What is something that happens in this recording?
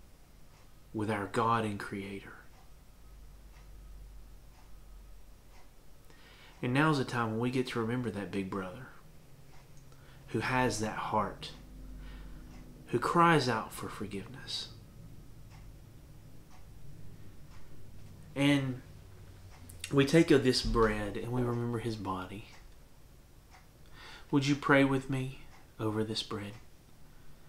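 A man speaks calmly into a nearby microphone, with pauses between phrases.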